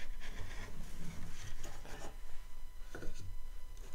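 A wooden strip scrapes and knocks on a table.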